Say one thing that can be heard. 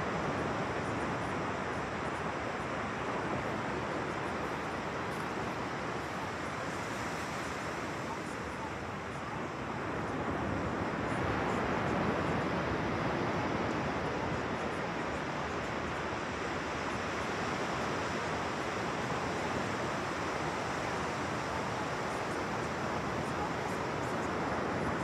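Small waves break gently and wash onto a beach.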